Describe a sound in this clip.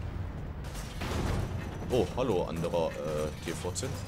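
Tank guns fire with sharp blasts.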